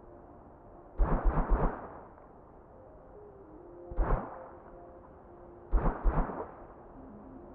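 A video game character dashes with short whooshing bursts.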